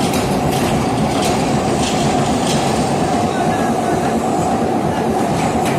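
Heavy spinning moulds rumble and roar steadily in a large echoing hall.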